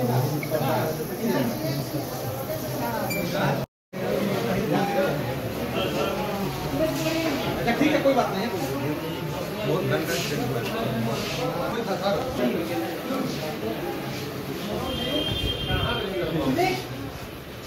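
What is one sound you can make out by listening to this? Several men talk over one another.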